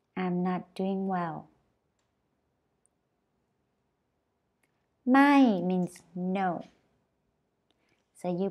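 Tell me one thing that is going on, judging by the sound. A young woman speaks slowly and clearly into a close microphone, pausing between phrases.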